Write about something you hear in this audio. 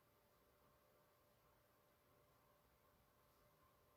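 A brush dabs softly on a canvas.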